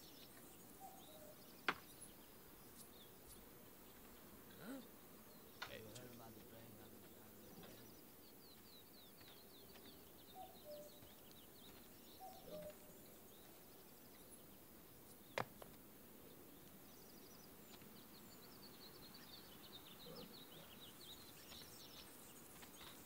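Leaves rustle as someone pushes through bushes.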